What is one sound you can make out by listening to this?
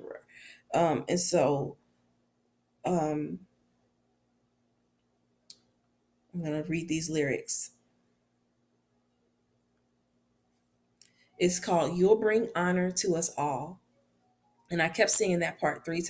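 A young woman speaks calmly and close to a microphone, in short bursts with pauses.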